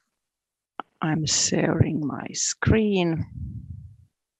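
A man speaks nearby in a room.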